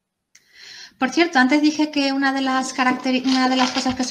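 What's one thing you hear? A young woman speaks calmly into a microphone over an online call.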